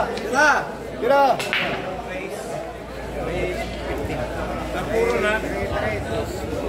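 Billiard balls clack together.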